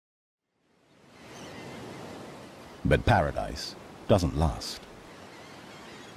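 Waves wash against rocks along the shore.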